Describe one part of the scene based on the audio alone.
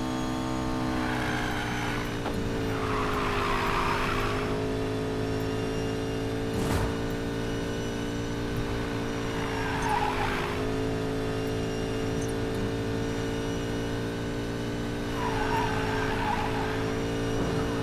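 Tyres screech as a car drifts through bends.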